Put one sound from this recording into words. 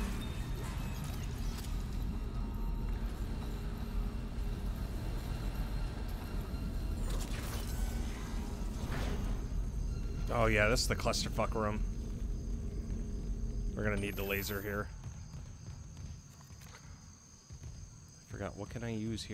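Heavy boots clank on a metal floor.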